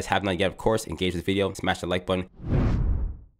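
A young man speaks with animation, close into a microphone.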